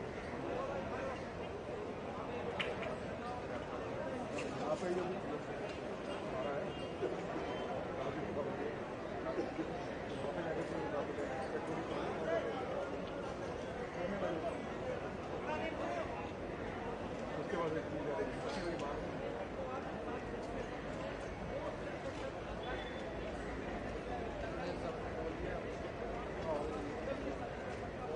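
A large crowd of men chatters and calls out nearby, outdoors.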